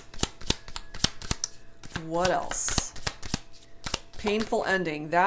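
Playing cards are shuffled with quick, crisp snaps and taps.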